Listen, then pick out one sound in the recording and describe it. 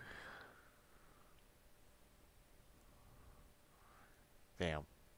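A man speaks briefly and quietly into a microphone.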